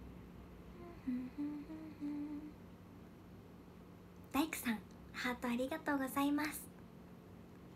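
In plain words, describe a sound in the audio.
A young woman speaks softly and cheerfully into a nearby microphone.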